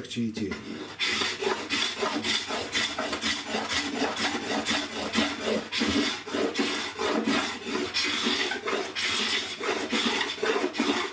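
A hand scraper scrapes rapidly across wood with rough, rasping strokes.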